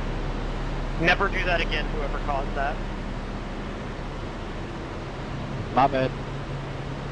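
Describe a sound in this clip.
A young man speaks briefly and calmly into a headset microphone.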